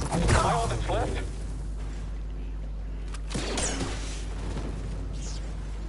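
A lightsaber swooshes and hums through the air.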